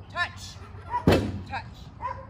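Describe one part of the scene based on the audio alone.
A seesaw board bangs down on the ground with a loud thud.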